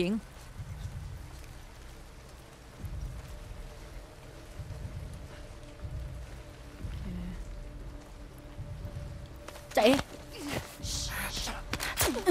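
Tall grass rustles as a person crawls through it.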